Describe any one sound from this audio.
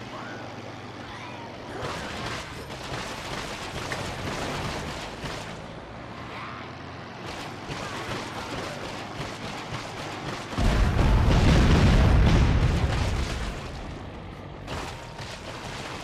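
Bodies thud and splatter against a vehicle.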